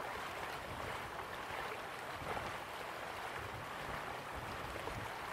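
Water splashes steadily down a small waterfall into a pool.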